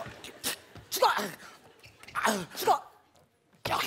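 A man speaks loudly and comically.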